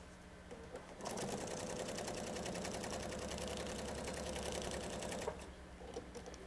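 A sewing machine runs steadily, stitching fast.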